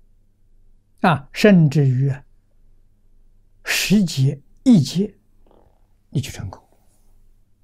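An elderly man speaks calmly and slowly into a close microphone, pausing between phrases.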